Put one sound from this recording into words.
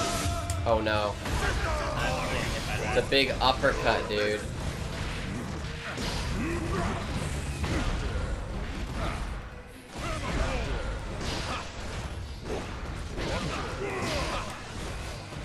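A fighting game plays punches and hits.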